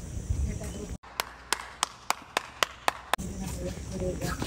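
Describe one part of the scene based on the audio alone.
A man claps his hands slowly.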